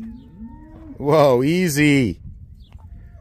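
A rooster crows nearby.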